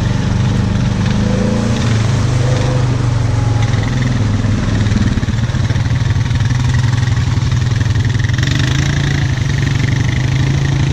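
Another quad bike engine revs ahead.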